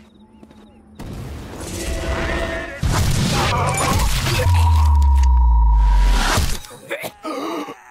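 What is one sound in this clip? A man is struck with heavy thuds and crunches.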